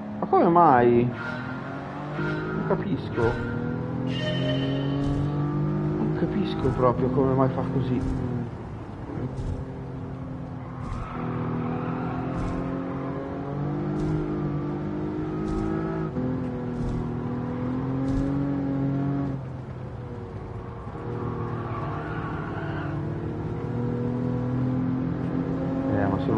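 A car engine drones and revs as it speeds up and shifts gears.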